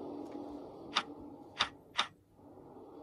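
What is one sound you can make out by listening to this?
A fingertip taps sharply on a tablet's glass.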